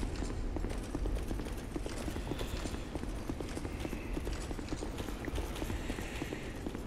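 Heavy armoured footsteps clank steadily on stone.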